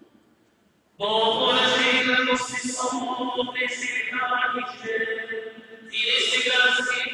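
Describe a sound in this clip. Men sing a chant together in a large echoing hall.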